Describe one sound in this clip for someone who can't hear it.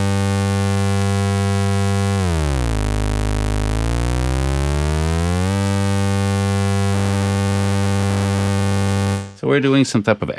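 A synthesizer drones with a buzzy tone that dips down in pitch and slides back up.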